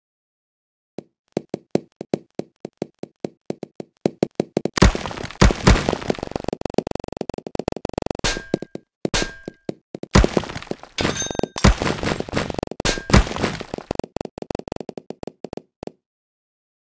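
Small game balls click and clatter rapidly as they fall and break blocks.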